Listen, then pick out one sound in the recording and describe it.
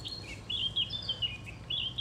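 A stick knocks against a small metal stove.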